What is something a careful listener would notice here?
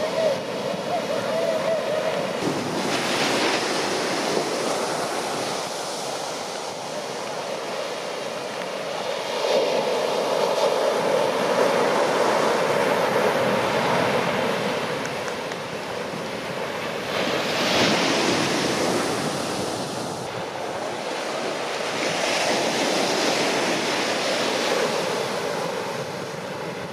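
Ocean waves crash and roll onto a beach.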